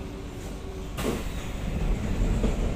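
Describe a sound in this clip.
Train doors slide open with a hiss.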